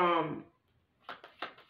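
Playing cards are shuffled with soft riffling.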